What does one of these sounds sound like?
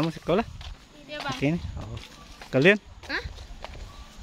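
Young girls chatter nearby outdoors.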